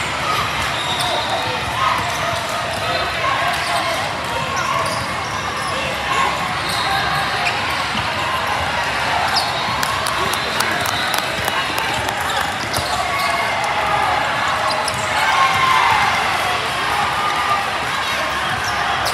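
A crowd of spectators chatters throughout a large echoing hall.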